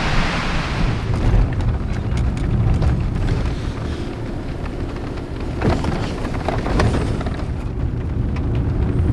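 A car engine rumbles low while driving along a bumpy dirt road.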